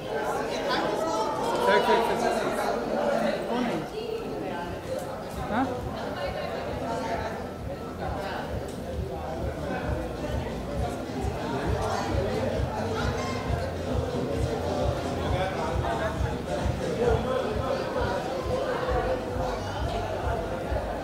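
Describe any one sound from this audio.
A crowd of people chatters nearby in a busy, echoing room.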